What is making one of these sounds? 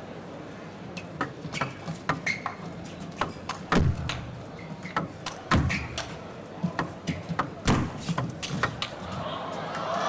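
A ball clicks back and forth on a table tennis table and bats.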